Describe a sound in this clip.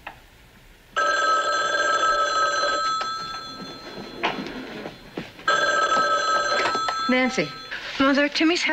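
A telephone rings loudly.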